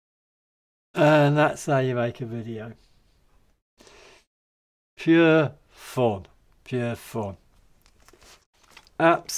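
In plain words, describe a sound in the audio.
An elderly man talks with animation, close to a microphone.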